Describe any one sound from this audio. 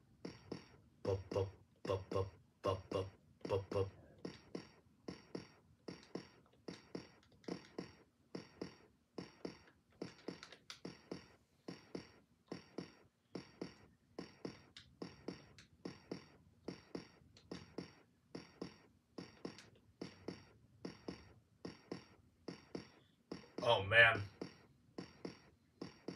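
Video game music plays through a television with a steady, pulsing beat.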